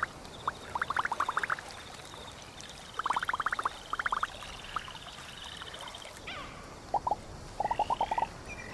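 Short high electronic blips chatter in quick bursts.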